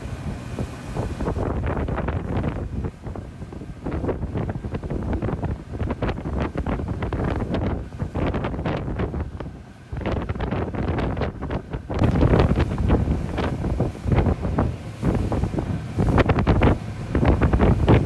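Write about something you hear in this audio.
Wind rushes and buffets across open water.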